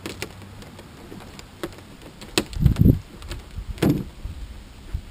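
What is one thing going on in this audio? Brittle panels crack and snap as they are pried loose.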